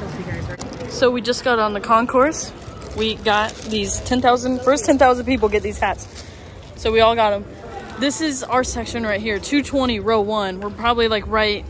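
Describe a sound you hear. A woman talks calmly and closely into a microphone.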